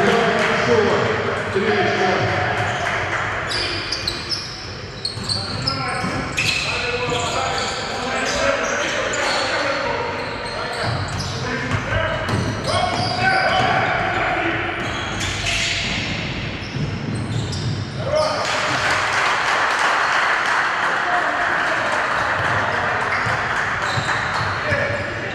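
Sneakers squeak on a hardwood floor in a large echoing hall.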